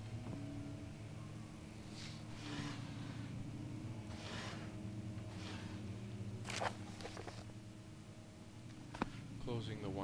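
A wooden drawer slides open with a scrape.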